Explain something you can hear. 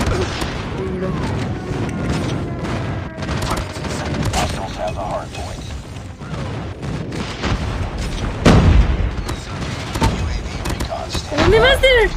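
Gunfire from a video game crackles in rapid bursts.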